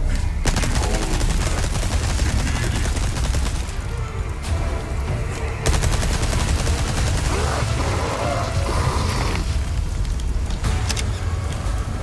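Gunshots ring out.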